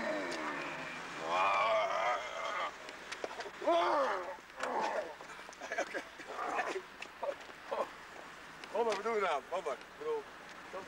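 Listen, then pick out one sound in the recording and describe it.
Men talk and shout excitedly close by outdoors.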